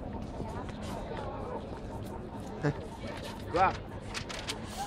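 A young man talks and laughs excitedly close by.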